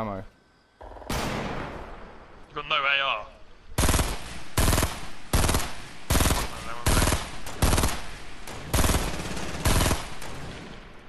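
A rifle fires a quick series of loud shots.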